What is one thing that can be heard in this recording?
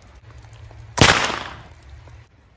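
A rifle fires a single loud shot outdoors.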